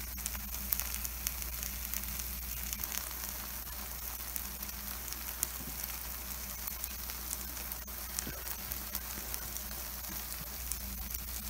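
Batter sizzles and crackles steadily on a hot griddle.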